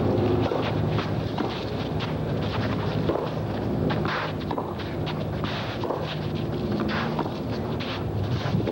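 A tennis ball is struck sharply with a racket several times.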